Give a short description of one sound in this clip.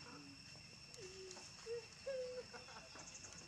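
A baby monkey gives soft, high squeaks close by.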